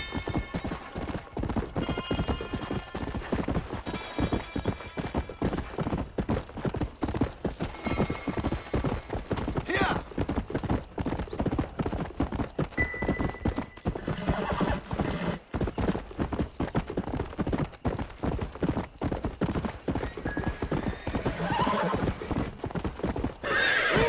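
Horse hooves pound steadily on a dirt trail at a gallop.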